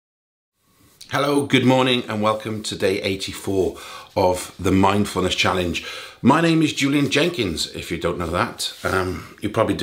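A middle-aged man talks calmly and closely into a microphone.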